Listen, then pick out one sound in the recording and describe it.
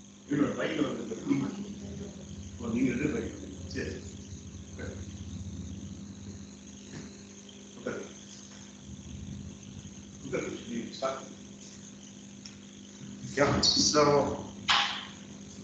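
A young man talks nearby in a hard, slightly echoing room.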